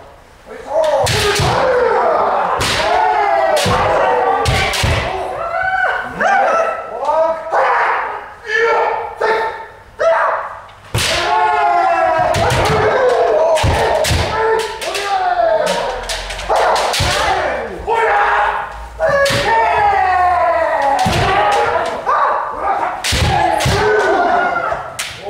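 Bamboo kendo swords clack sharply on armour.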